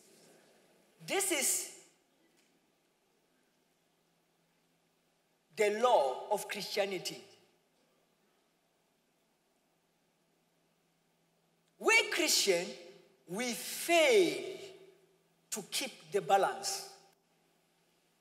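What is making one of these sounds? A young man speaks with animation through a microphone, in short phrases with pauses, in a large echoing hall.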